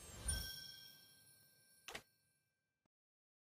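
A bright chime rings out and fades.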